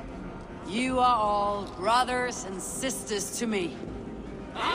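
A man speaks loudly and proudly.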